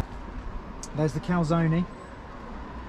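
A man talks briefly nearby.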